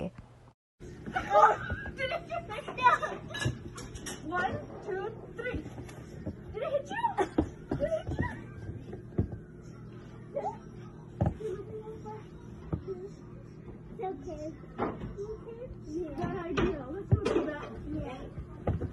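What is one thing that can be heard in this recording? A woman talks and laughs close by.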